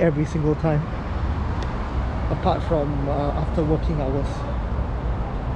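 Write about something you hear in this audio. A young man speaks calmly and close, his voice slightly muffled.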